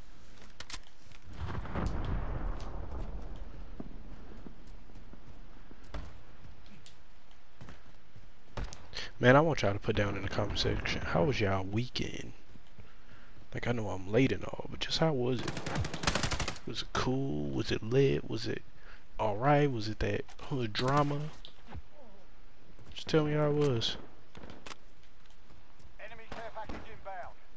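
Footsteps crunch quickly on dry, stony ground.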